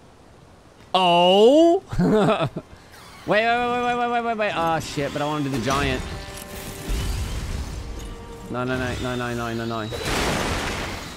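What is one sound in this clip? A young man talks and exclaims with animation into a microphone.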